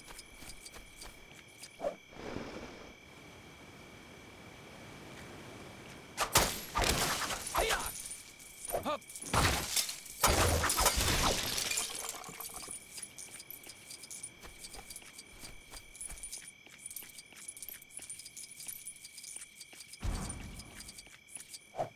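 Small coins jingle and tinkle as they are picked up.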